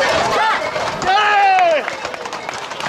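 A middle-aged man shouts loudly close by.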